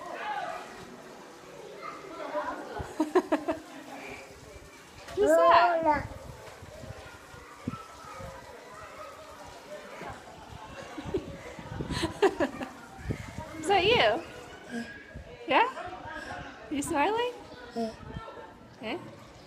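A toddler babbles and coos close by.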